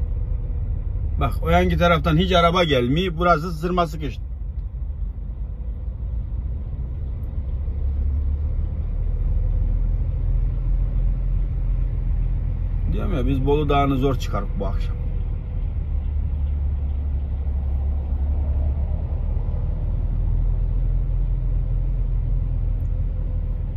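A truck engine rumbles low and steady while driving.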